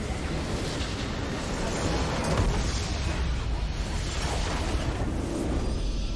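A crumbling structure explodes with a loud blast.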